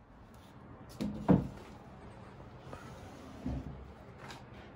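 A wooden panel knocks and thumps against a table.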